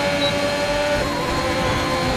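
A racing car's engine shifts up a gear with a sudden drop in pitch.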